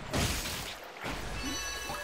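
A bright magical shimmer rings out.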